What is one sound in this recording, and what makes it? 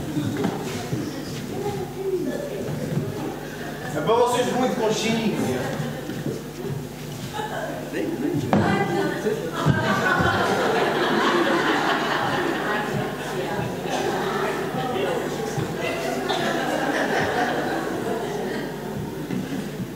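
Men speak loudly through microphones in a large echoing hall.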